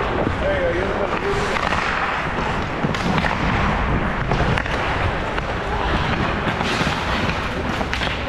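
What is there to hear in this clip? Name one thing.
Ice skates scrape and carve across the ice close by.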